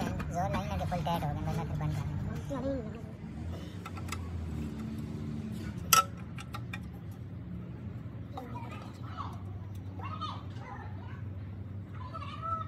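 A wrench clicks and clinks against metal.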